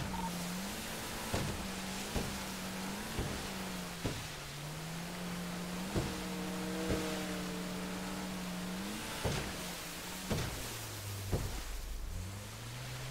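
Water splashes and slaps against a speeding boat's hull.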